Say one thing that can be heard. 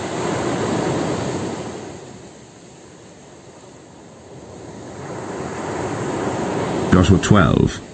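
Waves wash onto a pebble beach and draw back.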